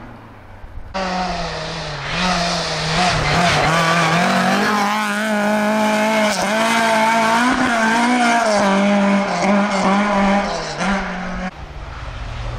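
A second rally car engine revs hard and wails as it races by and fades into the distance.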